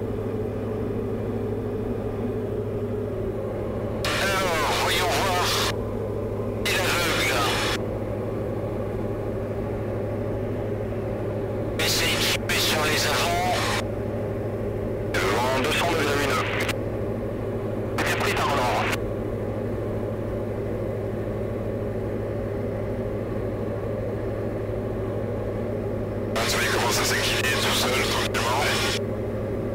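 A small aircraft engine drones steadily throughout.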